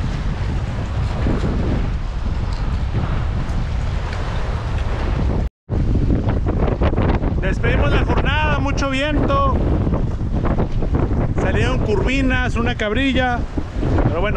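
Waves wash against rocks.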